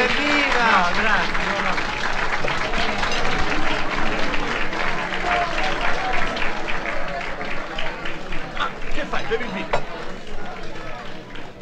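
A crowd applauds with dense clapping.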